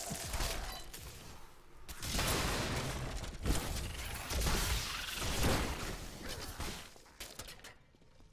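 Magic blasts crackle and whoosh in a fight in a video game.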